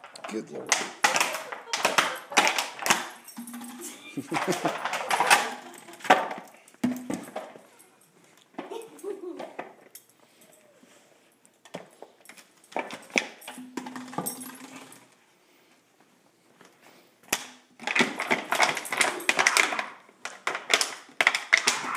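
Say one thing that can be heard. A dog crunches and crinkles a plastic bottle.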